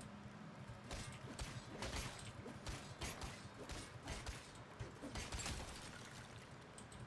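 A sword strikes repeatedly with sharp metallic hits.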